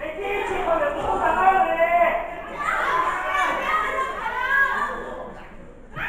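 A crowd of spectators shouts and cheers loudly in an echoing hall.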